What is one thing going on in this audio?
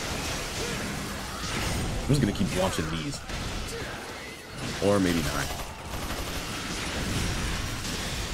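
Swords clash and slash in a fast fight.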